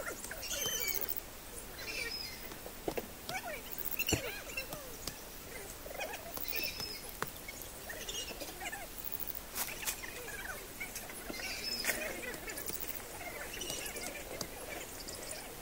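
Leafy plants rustle and stems snap as they are picked by hand.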